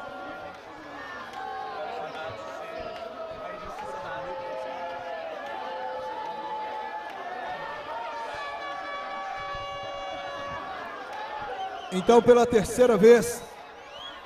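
A crowd of young men sings and cheers together outdoors.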